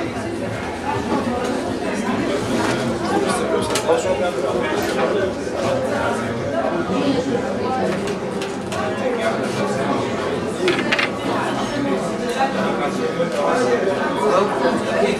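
A crowd of men and women chatters and murmurs all around indoors.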